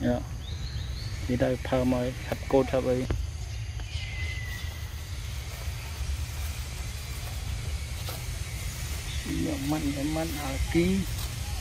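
A monkey munches on a piece of fruit.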